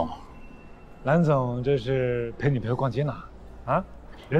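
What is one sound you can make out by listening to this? A young man speaks up with animation, asking a question.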